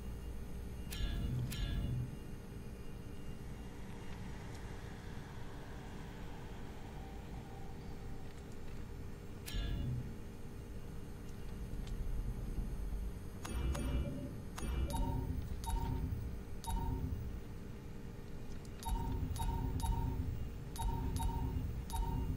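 Short electronic clicks and beeps sound as menu items are selected.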